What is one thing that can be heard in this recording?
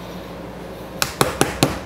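A hammer taps sharply on wood several times.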